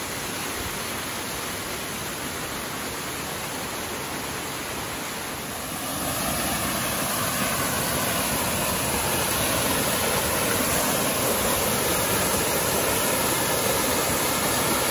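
A waterfall pours into a pool, growing louder up close.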